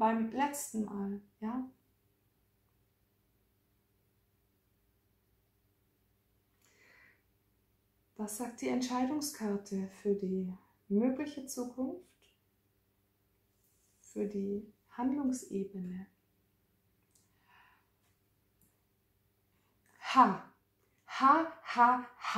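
A young woman talks with animation close to a microphone, pausing often.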